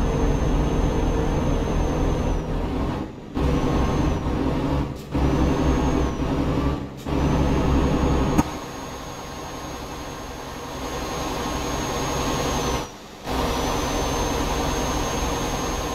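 A heavy truck engine rumbles steadily, dropping briefly now and then as gears change.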